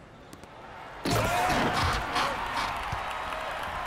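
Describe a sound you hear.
A crowd cheers loudly in a large arena.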